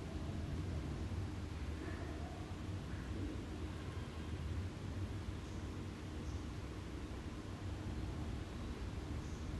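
Chalk scratches lightly on cloth.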